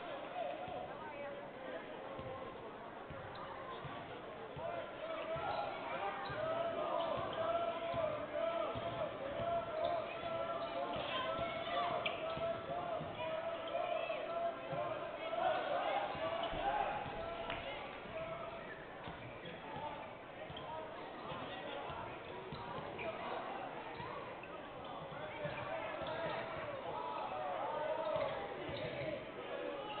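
A crowd murmurs in a large echoing gym.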